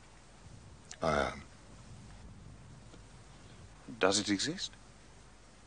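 A younger man answers briefly.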